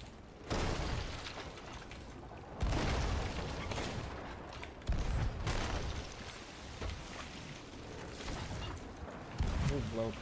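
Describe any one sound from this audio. Rough sea waves splash against a wooden ship.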